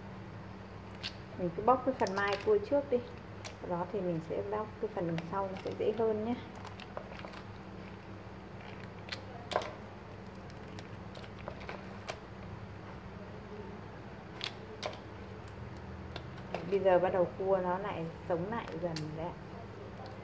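Small shells crack and click softly as fingers pick them apart.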